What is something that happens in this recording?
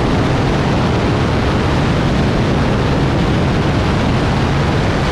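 A piston-engine aerobatic plane's engine roars in flight.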